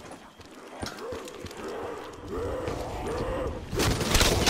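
A zombie growls and snarls up close.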